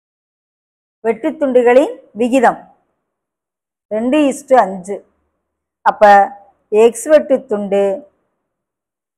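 A middle-aged woman speaks calmly through a microphone, explaining in short phrases.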